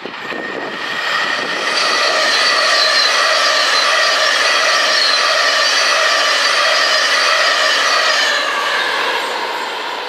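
A steam locomotive whistle blows long and loud.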